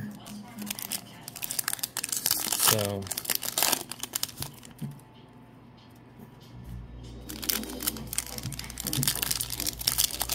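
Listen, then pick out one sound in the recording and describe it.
A foil card pack crinkles and tears open close by.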